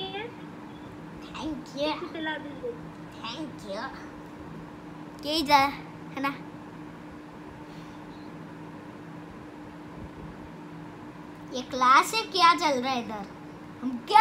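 A child's voice talks through a laptop's speaker on an online call.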